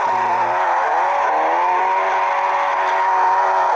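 Tyres squeal as a car slides sideways.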